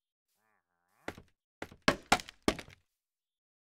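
Wooden blocks knock into place several times in quick succession.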